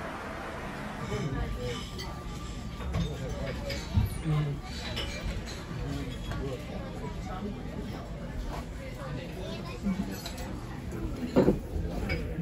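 People chatter in a busy room.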